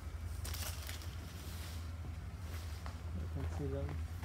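Leaves rustle as hands brush through a plant.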